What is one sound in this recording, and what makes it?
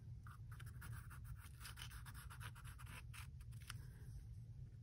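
A pen scratches quickly across paper.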